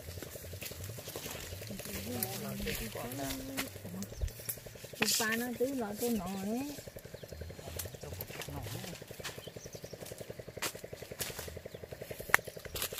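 A man rustles through dry brush and snaps twigs some way off.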